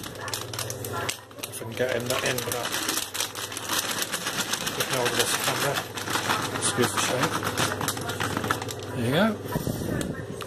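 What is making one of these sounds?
Nuts pour from a plastic bag and rattle into a jug.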